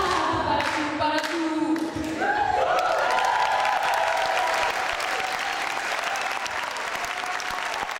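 A group of young women sings in harmony without instruments through microphones in a hall.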